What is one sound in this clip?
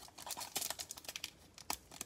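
A plastic pack tears open.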